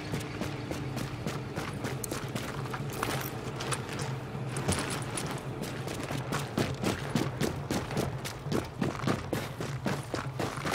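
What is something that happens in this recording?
Boots thud quickly on snow and metal stairs.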